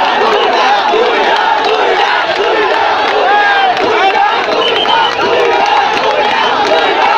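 A large outdoor crowd of men chatters and shouts all around.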